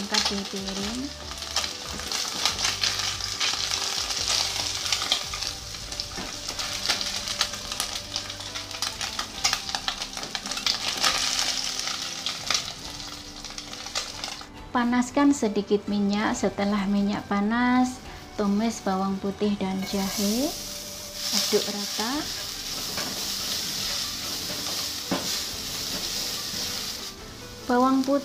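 Food sizzles and crackles in hot oil.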